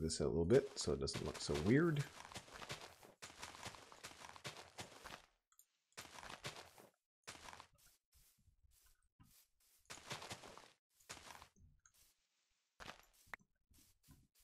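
Dirt crumbles in short bursts as blocks are dug out.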